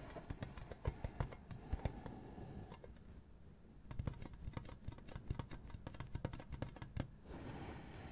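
Fingers tap and scratch on a crinkly tin lid close by.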